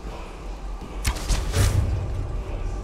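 A bow string twangs as an arrow is loosed.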